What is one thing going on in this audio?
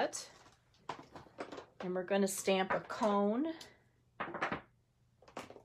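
Acrylic stamp blocks tap down onto paper on a table.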